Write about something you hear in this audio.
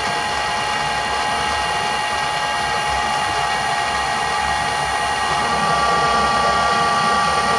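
A cutting tool scrapes against spinning metal.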